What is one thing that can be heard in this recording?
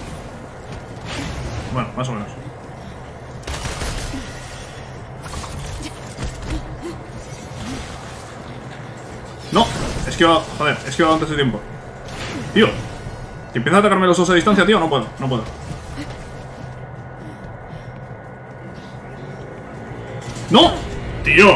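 An energy blast bursts with a sharp whoosh.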